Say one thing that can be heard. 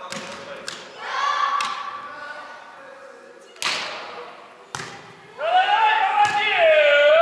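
A person shouts loudly in a large echoing hall.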